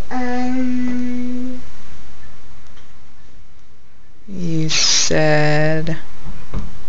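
A little girl makes long, drawn-out whining sounds close by.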